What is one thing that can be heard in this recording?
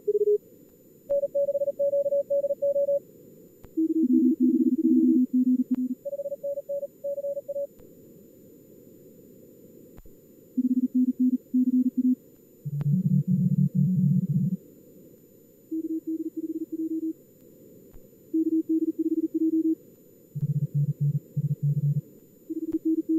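Morse code beeps at several different pitches come in quick bursts.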